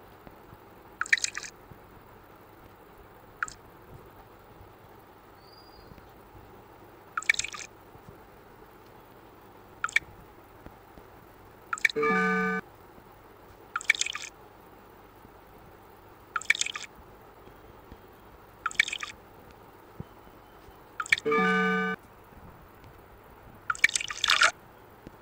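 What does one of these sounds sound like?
Short splashing pour sound effects from a mobile puzzle game play.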